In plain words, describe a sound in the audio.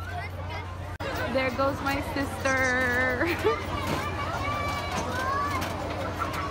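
Young riders scream and laugh on a fair ride.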